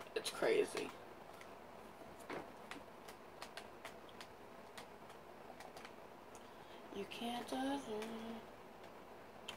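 A video game plays short clicks and tones through a television speaker.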